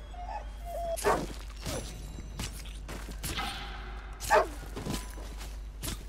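A knife cuts and tears through an animal carcass.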